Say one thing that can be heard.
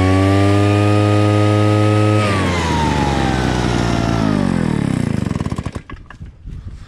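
A petrol engine runs loudly close by, then winds down and stops.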